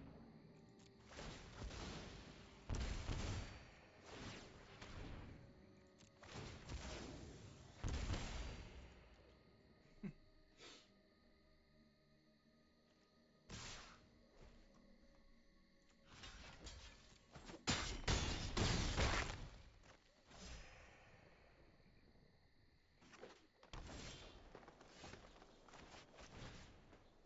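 Magical sound effects whoosh and chime.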